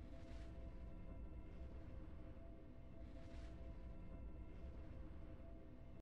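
Triumphant game music plays with steady sustained notes.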